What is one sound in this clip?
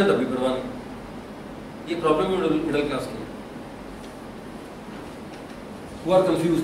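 A man lectures calmly in a room with slight echo, in short phrases with pauses.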